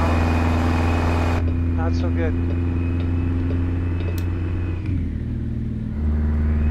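A truck engine drones steadily, shifting in pitch as gears change.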